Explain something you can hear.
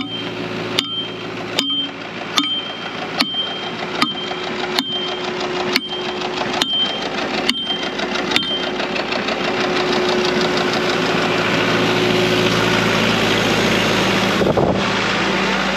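A skid steer engine idles nearby with a steady rumble.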